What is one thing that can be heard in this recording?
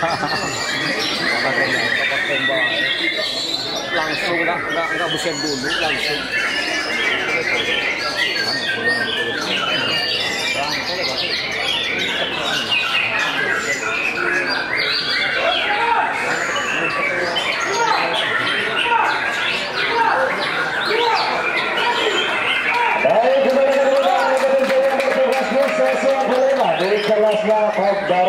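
A songbird sings loudly with fast, varied warbling trills and whistles.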